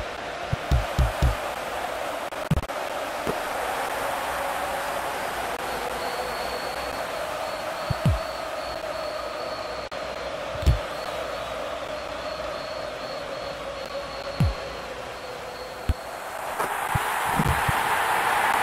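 A football is kicked with short dull thuds.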